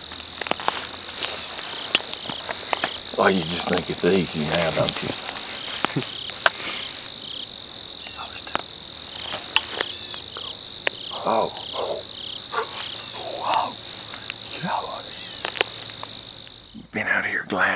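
Insects buzz steadily in a high drone.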